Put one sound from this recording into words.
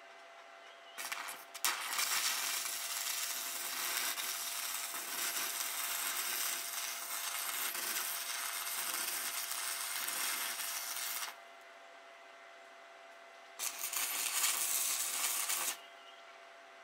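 An electric welder crackles and sizzles in bursts.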